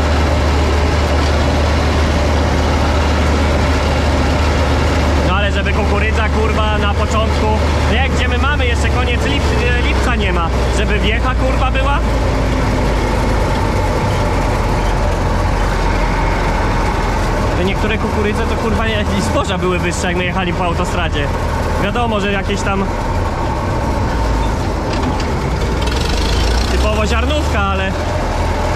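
A combine harvester engine roars steadily close by.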